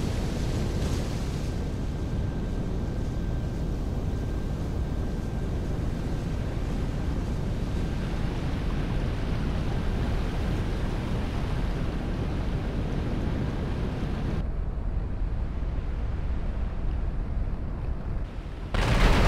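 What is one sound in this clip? A jet engine roars steadily close by.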